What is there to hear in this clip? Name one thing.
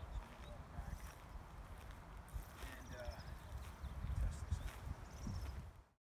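Footsteps swish through tall grass, drawing closer.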